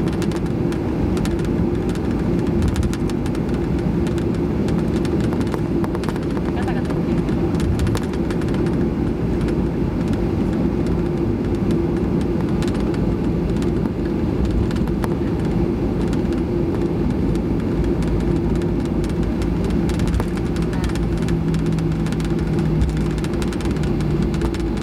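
Jet engines hum steadily inside a plane's cabin as it taxis.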